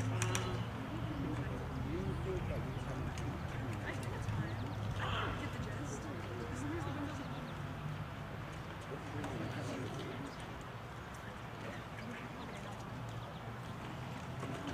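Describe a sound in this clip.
Young people chat quietly outdoors at a distance.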